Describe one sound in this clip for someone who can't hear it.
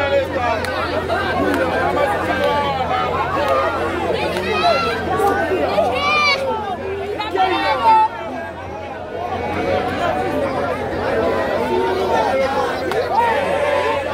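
A man speaks loudly into a microphone to a crowd.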